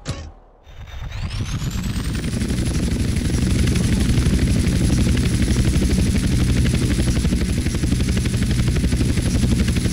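A helicopter's rotor thumps and roars loudly, with a whining engine.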